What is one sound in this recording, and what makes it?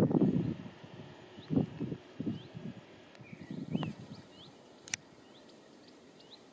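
A train approaches on the tracks with a low rumble.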